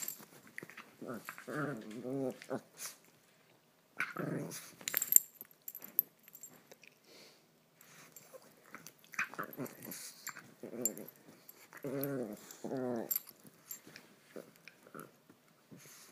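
Dogs scuffle and tussle on soft bedding.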